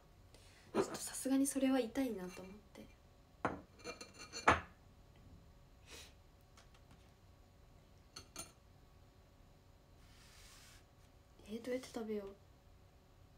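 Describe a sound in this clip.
A young woman speaks softly and close by, with pauses.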